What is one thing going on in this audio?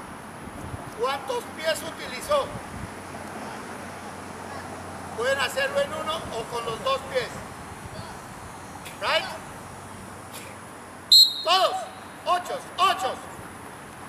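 A man calls out to children across an open field.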